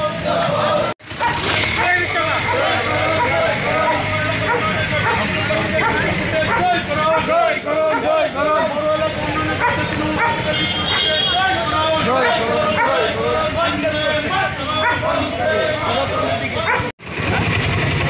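A crowd chants loudly as it marches along a street.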